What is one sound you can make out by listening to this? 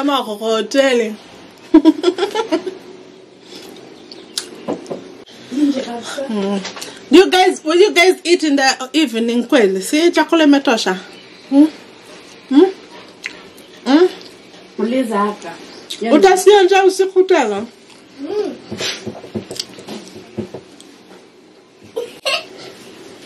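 A young woman chews food with wet, smacking sounds.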